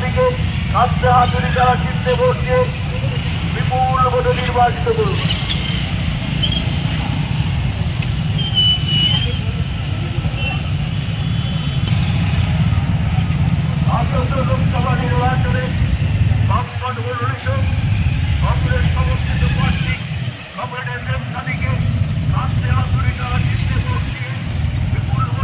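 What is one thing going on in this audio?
Many motorcycle engines rumble steadily as they ride past.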